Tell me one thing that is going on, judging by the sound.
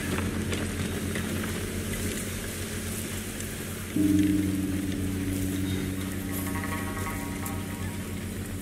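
Soft footsteps rustle through grass.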